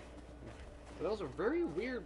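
Footsteps crunch softly on snow.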